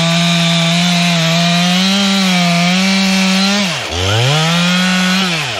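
A chainsaw roars loudly close by, dipping briefly in pitch and revving back up.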